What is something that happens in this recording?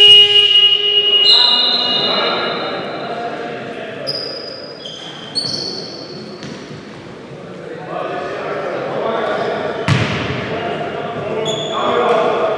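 Young men call out to each other across the court.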